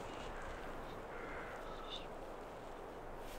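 A young woman whispers close by.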